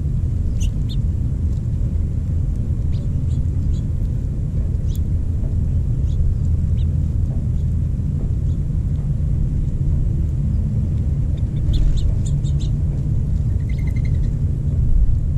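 Small birds chirp and twitter close by.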